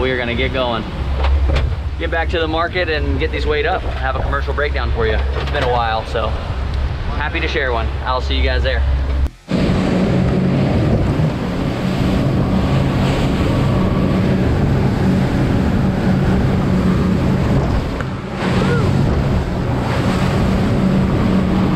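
A boat engine roars steadily.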